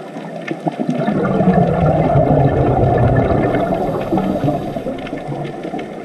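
Scuba air bubbles rumble and gurgle loudly underwater.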